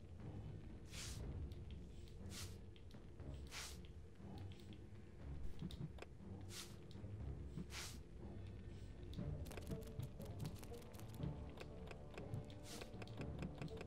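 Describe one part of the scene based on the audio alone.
Short soft clicks sound now and then.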